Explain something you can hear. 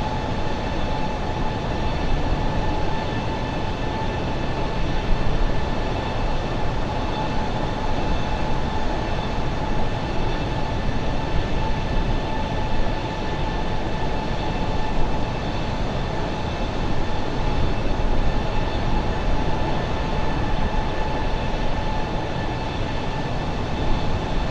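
Jet engines roar steadily with a constant high whine.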